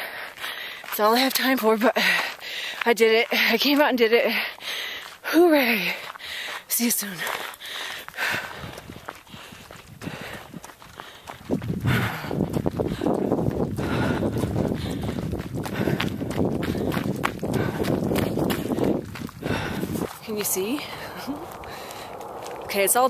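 A young woman talks breathlessly close to the microphone.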